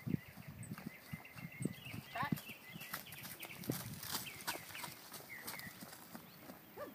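A woman speaks calmly to a horse nearby.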